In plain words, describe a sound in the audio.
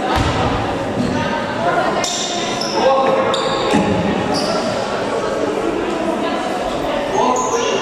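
Young players call out to each other across the court.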